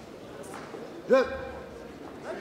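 A man calls out loudly once in an echoing hall.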